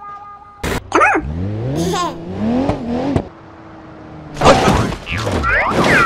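A car's tyres screech on the road.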